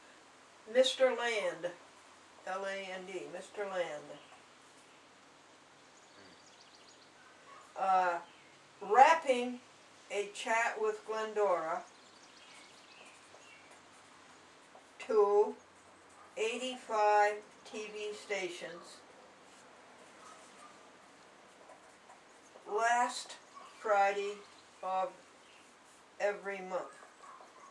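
An elderly woman reads aloud from a sheet of paper close by, pausing between phrases.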